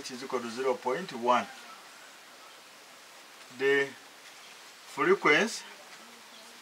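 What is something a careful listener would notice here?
A man speaks calmly and slowly, in short phrases with pauses.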